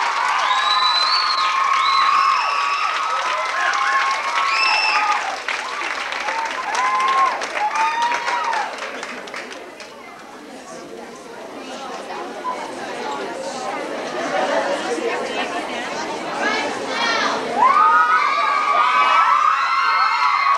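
Children chatter and call out loudly in an echoing hall.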